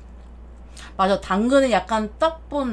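A young woman speaks with animation, close to a microphone.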